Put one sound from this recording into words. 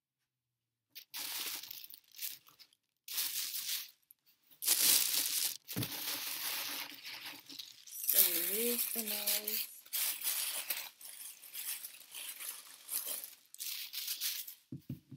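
A plastic bag crinkles and rustles loudly.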